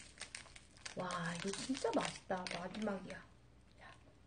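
A young woman speaks brightly and close to a microphone.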